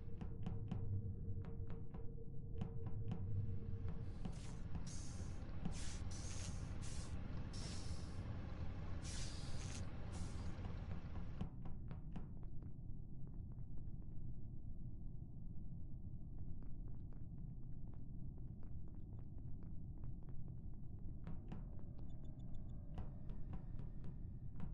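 Small footsteps patter quickly on a metal floor.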